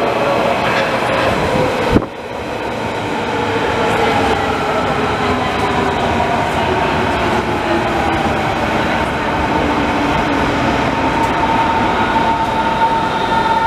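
A train rumbles along the tracks, its motors whining.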